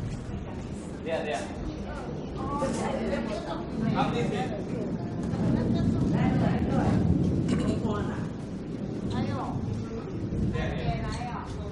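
Adults talk quietly nearby as they walk.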